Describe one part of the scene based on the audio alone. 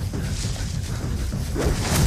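A man runs through dry grass and leaves.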